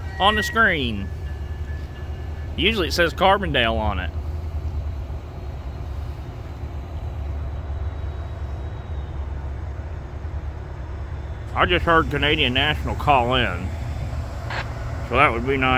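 A train engine rumbles low and steady nearby.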